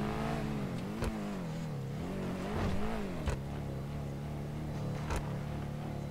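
Car tyres thump over joins in the track.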